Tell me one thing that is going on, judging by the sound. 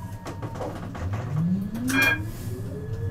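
A tram's electric motor whines, rising in pitch as the tram pulls away.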